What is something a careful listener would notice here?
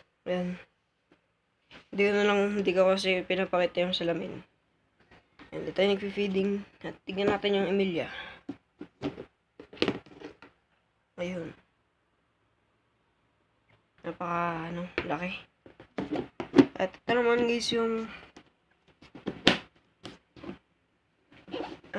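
A plastic lid clatters as hands handle it.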